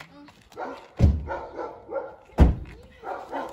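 A car boot slams shut with a thud.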